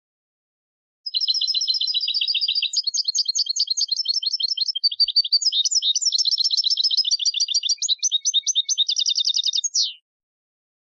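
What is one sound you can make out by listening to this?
A small songbird sings a fast, twittering song up close.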